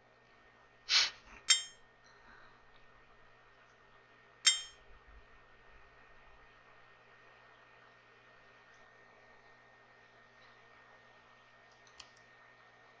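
Short interface clicks chime a few times.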